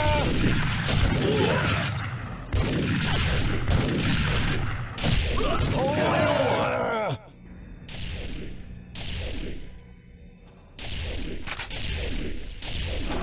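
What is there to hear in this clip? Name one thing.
Gunfire from a video game rifle rattles in rapid bursts.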